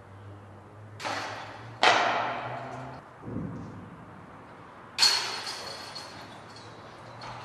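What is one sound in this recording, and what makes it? A flying disc crashes into hanging metal chains, which jangle and ring out in an echoing space.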